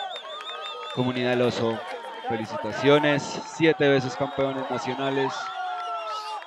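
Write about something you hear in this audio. Young men shout and cheer loudly close by.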